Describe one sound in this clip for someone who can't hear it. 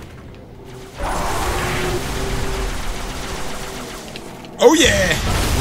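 A rocket launcher fires with a loud blast.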